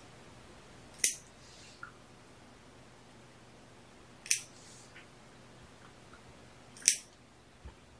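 Short, sharp snapping sounds come from a small object handled in someone's hands.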